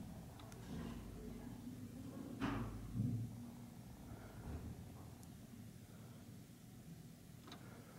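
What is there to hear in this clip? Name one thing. A finger presses an elevator call button with a soft click.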